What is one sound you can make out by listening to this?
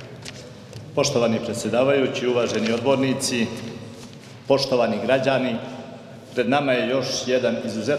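A middle-aged man reads out a speech calmly into a close microphone.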